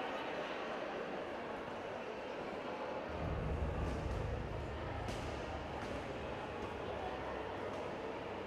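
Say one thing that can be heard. Bare feet thud and shuffle on mats.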